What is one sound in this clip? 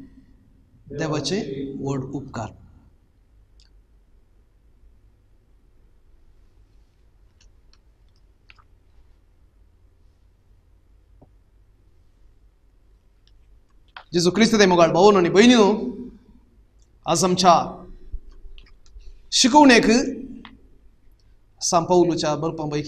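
A man speaks calmly into a close microphone, reading out with pauses.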